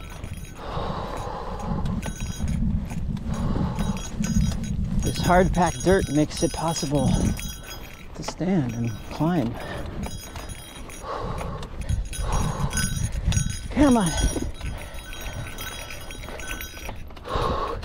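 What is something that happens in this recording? Bicycle tyres crunch and rumble over a dirt trail.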